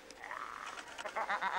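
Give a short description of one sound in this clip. Skis scrape across snow.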